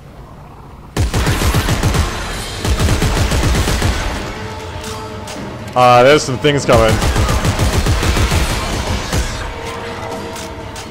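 Gunfire bursts out in rapid, loud shots.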